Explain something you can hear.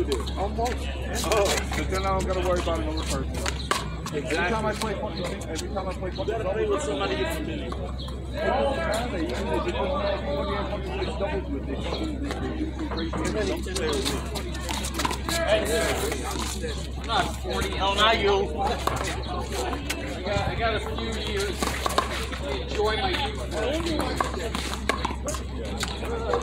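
Men talk with animation close by, outdoors.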